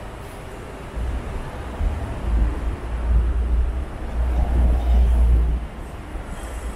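A bus drives by close, loud and rumbling.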